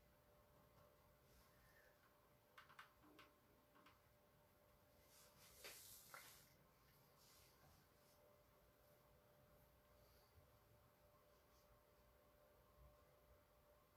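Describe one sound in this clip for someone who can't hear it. A paintbrush taps and brushes lightly against a canvas.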